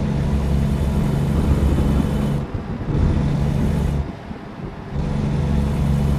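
Windscreen wipers swish across the glass.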